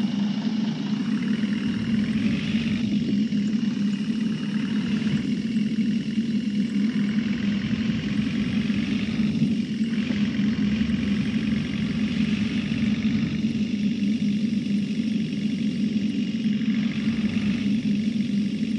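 A bus engine revs up, rising in pitch again and again as it changes gears.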